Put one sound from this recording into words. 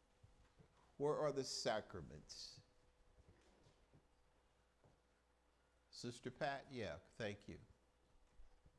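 An elderly man speaks with emphasis into a microphone.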